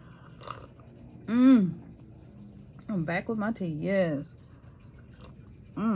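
A woman slurps a hot drink close by.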